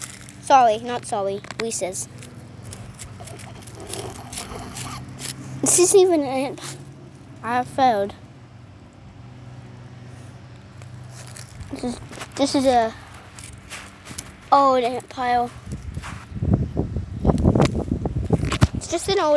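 A child talks with animation close by.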